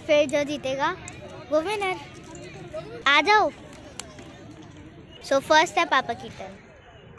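A girl talks excitedly and giggles close by.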